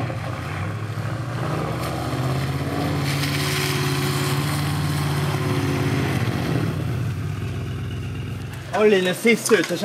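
A car engine hums and revs as the car drives across wet tarmac.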